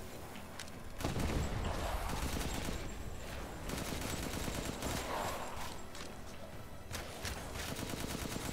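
Gunshots crack repeatedly.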